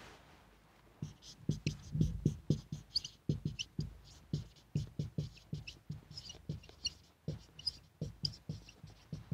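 A marker squeaks and taps as it writes on a whiteboard.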